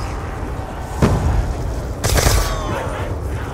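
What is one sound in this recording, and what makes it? A gun fires with loud, sharp bursts.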